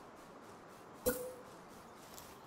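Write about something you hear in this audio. A wooden platform drops into place with a dull thud.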